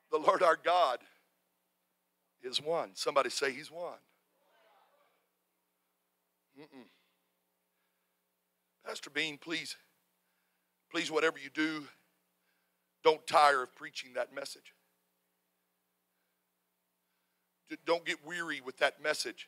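A middle-aged man preaches through a microphone with animation, in bursts with pauses, in an echoing hall.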